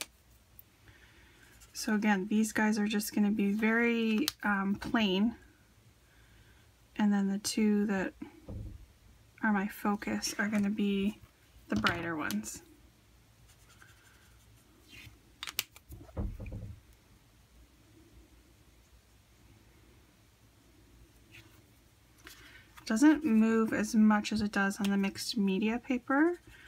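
A marker scratches softly on paper.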